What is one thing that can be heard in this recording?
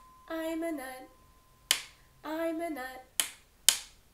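A young woman sings short phrases close by.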